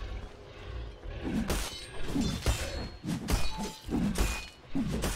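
Game spells and weapons clash and crackle in a fight.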